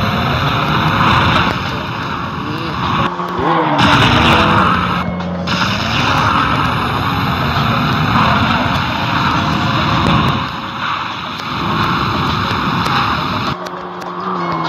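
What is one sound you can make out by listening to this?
Tyres screech on the road as a car drifts.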